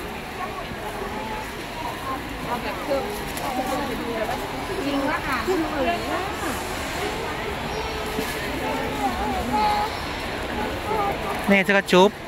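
A crowd of people chatters nearby in a large, busy indoor hall.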